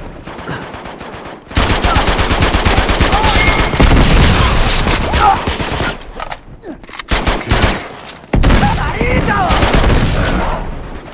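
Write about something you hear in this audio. Gunfire rattles in loud bursts.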